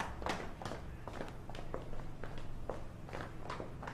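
Footsteps scuff on paving.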